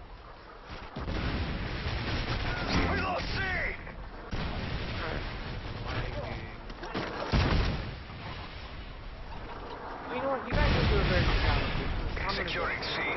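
Rapid gunfire rattles loudly.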